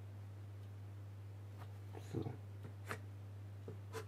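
A blade scratches lightly across wood.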